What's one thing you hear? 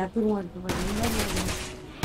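Gunshots crack.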